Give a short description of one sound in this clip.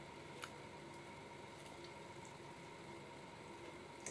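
A young woman bites into crispy food.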